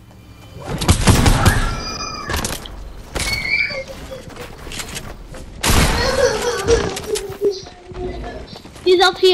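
Wooden and stone walls snap into place with quick knocks and thuds.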